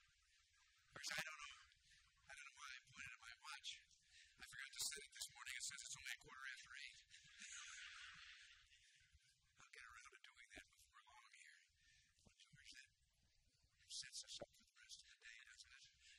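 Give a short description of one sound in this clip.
An elderly man speaks calmly into a microphone, heard through loudspeakers in a large room.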